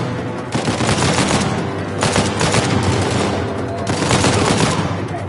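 A submachine gun fires rapid bursts in an echoing hall.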